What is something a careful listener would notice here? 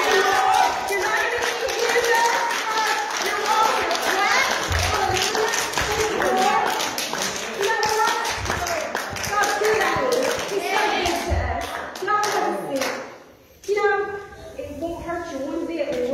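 A woman speaks into a microphone over loudspeakers, reading out steadily in a room with some echo.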